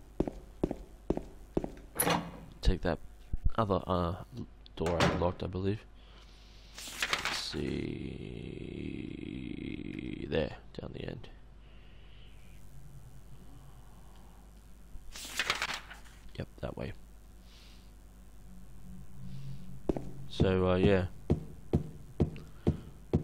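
Footsteps run quickly on a hard floor.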